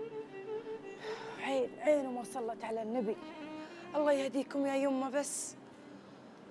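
A middle-aged woman speaks in distress, close by.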